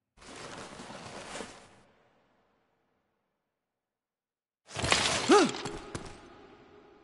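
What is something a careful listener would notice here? Electric sparks crackle and sizzle.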